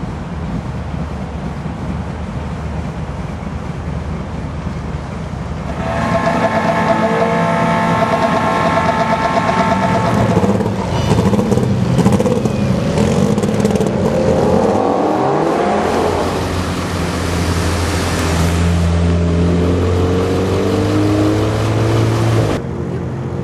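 Car engines rumble and rev loudly outdoors.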